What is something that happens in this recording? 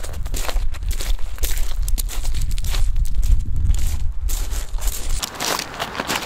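Wind rumbles against the microphone.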